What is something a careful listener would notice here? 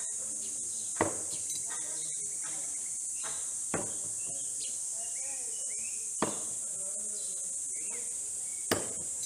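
A thrown object thuds sharply into a wooden target, several times.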